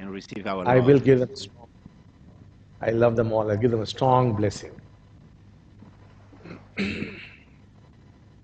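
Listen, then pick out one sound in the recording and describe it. An elderly man speaks slowly and calmly into a microphone, with long pauses.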